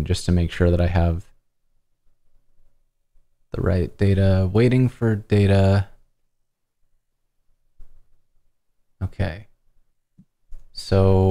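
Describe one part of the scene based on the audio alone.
A man speaks calmly through a microphone in an online call.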